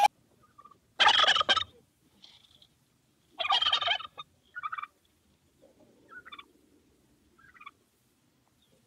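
A turkey gobbles.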